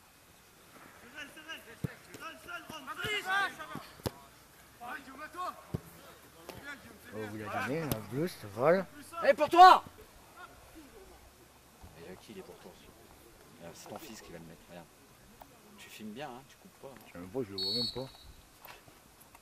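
Young men shout loudly across an open field.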